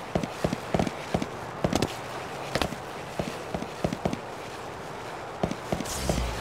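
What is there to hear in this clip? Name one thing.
Footsteps climb hard stone stairs at a steady pace.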